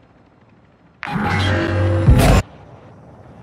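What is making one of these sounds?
A loud game sound effect booms and whooshes.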